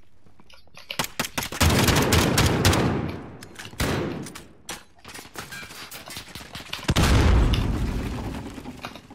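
A rifle fires rapidly in long, loud bursts.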